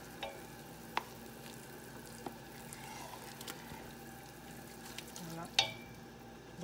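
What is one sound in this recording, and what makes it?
A wooden spoon knocks against the rim of a metal pot.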